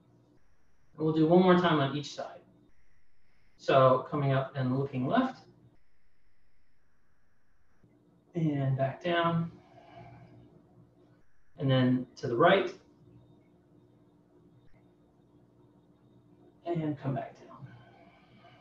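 A man speaks calmly, giving instructions in short bursts.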